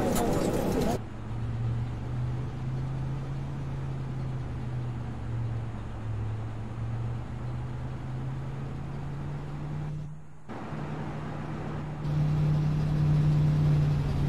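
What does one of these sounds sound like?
A parked jet airliner's engine hums steadily and low.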